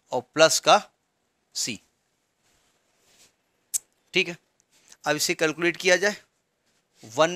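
A middle-aged man explains calmly into a close microphone, in short bursts.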